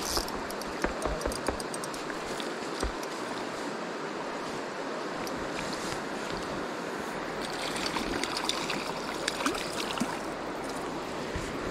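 A river flows and ripples steadily over stones.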